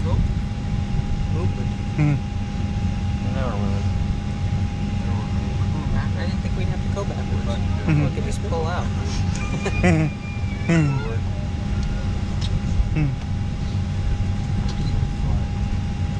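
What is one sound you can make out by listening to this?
Aircraft engines drone in a steady low roar.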